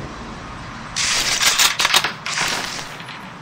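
A rifle bolt clacks and rattles as it is worked.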